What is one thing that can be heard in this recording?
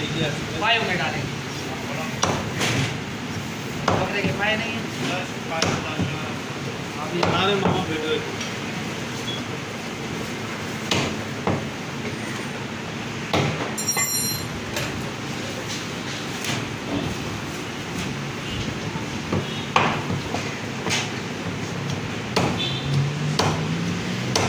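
A heavy cleaver chops through meat and bone on a wooden block with sharp thuds.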